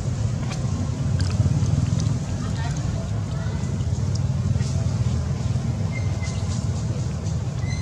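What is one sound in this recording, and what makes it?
A baby monkey chews food softly.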